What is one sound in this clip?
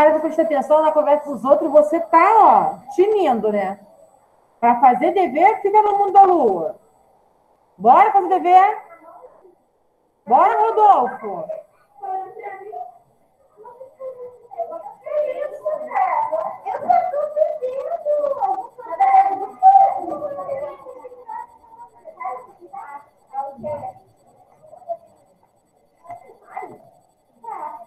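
A woman speaks calmly and closely through a microphone.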